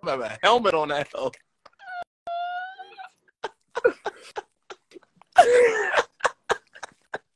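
A man laughs over an online call.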